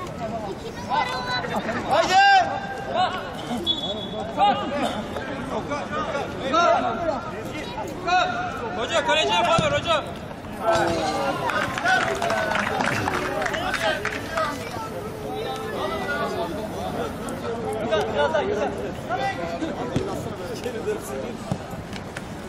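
Young men shout and call to each other across an outdoor pitch.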